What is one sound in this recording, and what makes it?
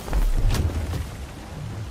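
A boulder crashes and shatters.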